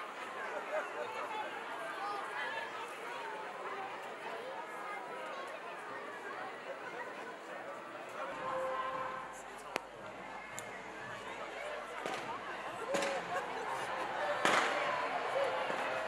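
A large crowd chatters outdoors, with many voices overlapping.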